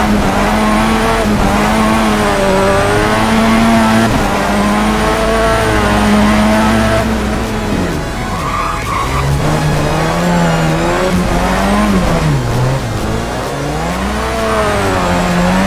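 Tyres squeal as a car drifts through corners.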